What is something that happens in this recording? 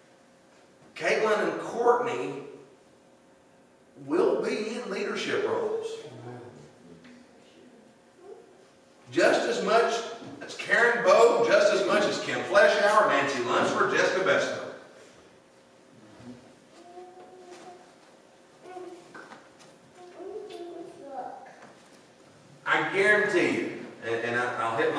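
A man preaches with animation through a microphone in an echoing hall, pausing between phrases.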